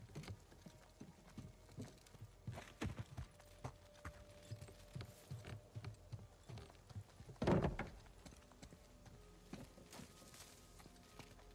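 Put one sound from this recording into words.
Footsteps run quickly over ground and wooden planks.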